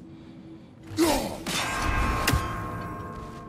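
An axe whooshes through the air and strikes with a loud crack.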